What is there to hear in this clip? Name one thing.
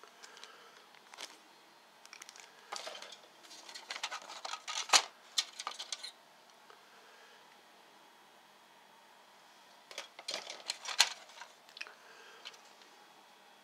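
Small plastic parts rattle and clatter.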